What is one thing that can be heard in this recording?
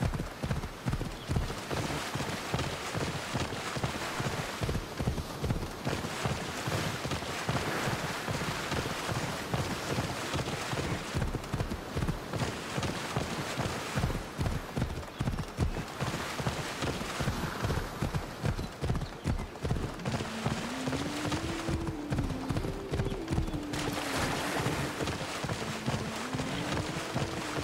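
Water splashes under a horse's hooves.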